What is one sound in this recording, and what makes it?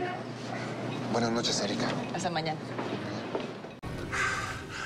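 A woman speaks warmly nearby.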